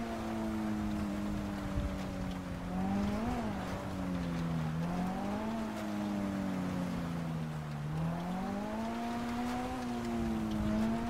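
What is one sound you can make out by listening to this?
Tyres crunch through snow.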